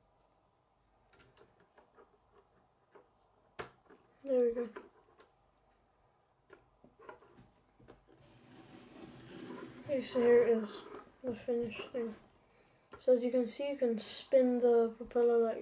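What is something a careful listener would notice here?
Plastic toy pieces click and rattle as they are handled.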